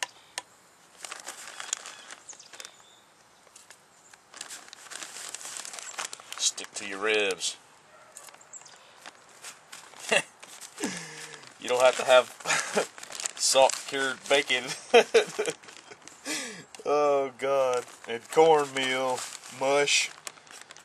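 A plastic bag crinkles and rustles in a man's hands.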